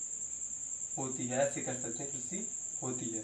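A young man speaks calmly, close by, as if explaining.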